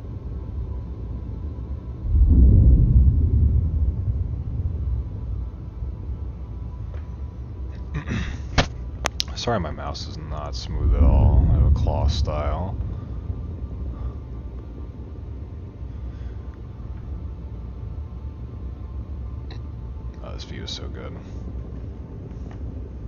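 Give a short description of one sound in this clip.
A large spacecraft's engines rumble low and steady, swelling to a deep roar at times.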